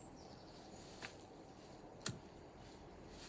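A lighter clicks sharply, close by.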